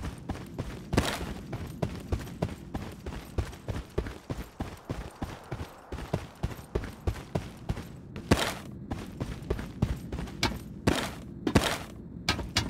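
A gun fires sharp single shots.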